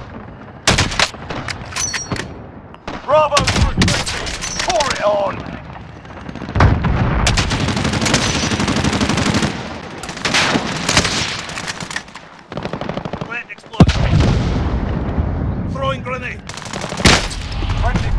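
Rifle shots crack loudly.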